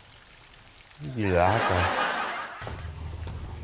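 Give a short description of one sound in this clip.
A middle-aged man exclaims loudly.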